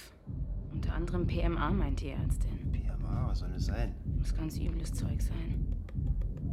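A man speaks in a low, tense voice nearby.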